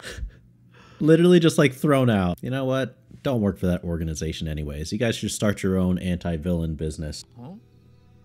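A young man talks with animation, close into a microphone.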